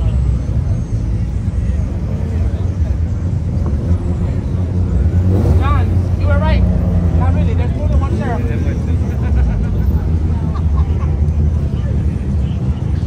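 A car engine revs loudly and roars nearby.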